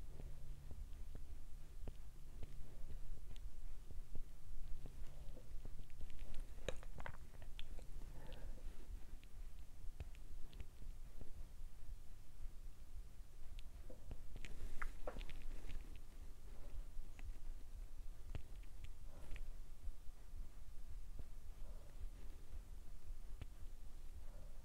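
A plastic case clicks and taps softly as it is handled close by.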